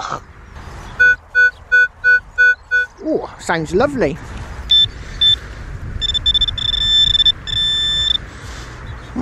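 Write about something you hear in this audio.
A metal detector beeps in quick repeated pulses, then holds a steady tone.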